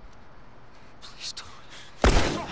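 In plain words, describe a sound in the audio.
A man pleads in a frightened voice.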